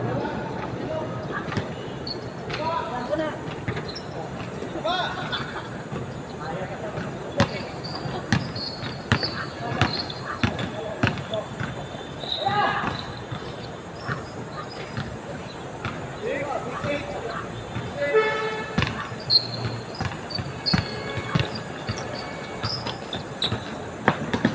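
Men call out to each other across the court.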